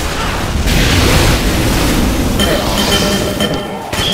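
A flamethrower roars in bursts.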